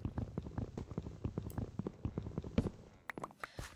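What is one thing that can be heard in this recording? Wooden blocks knock and crack rapidly as they are broken.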